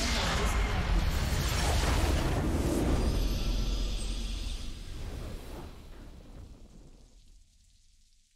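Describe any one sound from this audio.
A triumphant fanfare swells and then fades away.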